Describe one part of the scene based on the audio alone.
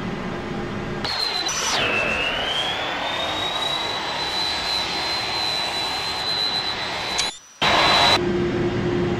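A high engine whine rises and holds steady.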